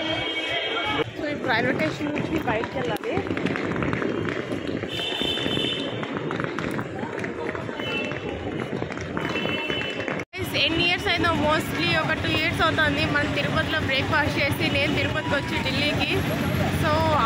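A young woman talks with animation, close to the microphone.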